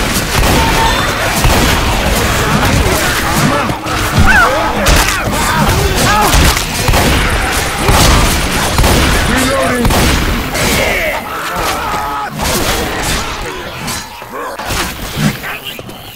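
A shotgun fires loud, booming shots.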